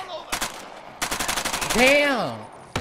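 A pistol fires a rapid string of shots.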